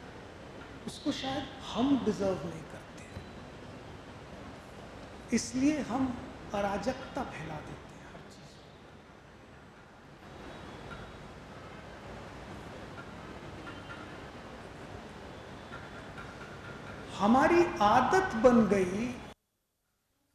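A man speaks with animation through a microphone in a room with a slight echo.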